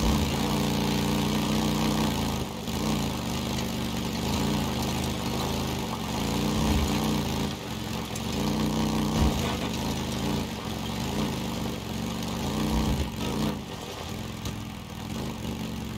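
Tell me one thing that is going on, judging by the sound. A motorcycle engine rumbles and revs up and down steadily.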